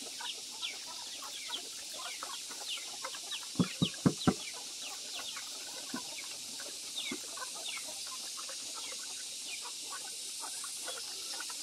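Chickens cluck and peep nearby.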